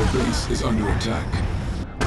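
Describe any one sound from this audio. Laser weapons fire with sharp zaps.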